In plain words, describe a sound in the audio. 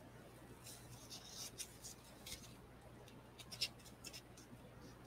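A ribbon rustles and rubs against card stock as hands work it.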